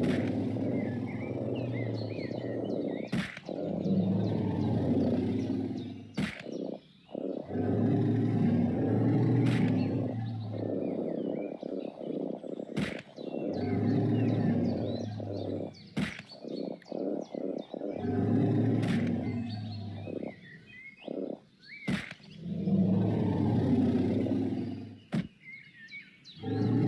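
A huge dinosaur stomps with heavy, rumbling thuds.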